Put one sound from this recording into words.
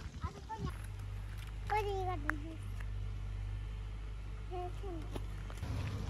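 Young girls chatter close by.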